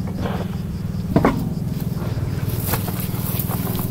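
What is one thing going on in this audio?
A car wheel knocks and scrapes on gravel as it is pulled off.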